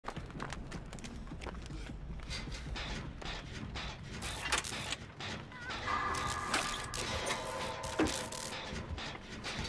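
Metal parts of a machine clank and rattle as hands work on it.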